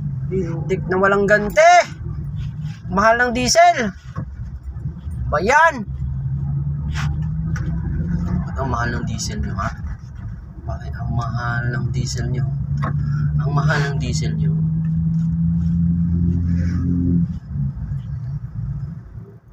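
A car engine hums steadily from inside the car as it drives along a road.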